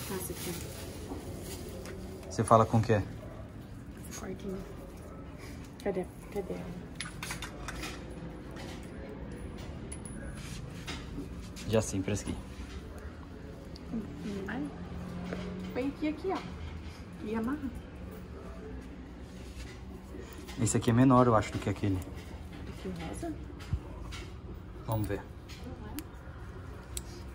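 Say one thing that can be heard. A woman talks calmly nearby.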